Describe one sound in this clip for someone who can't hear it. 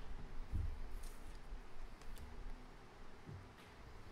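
Cards slide across a wooden table.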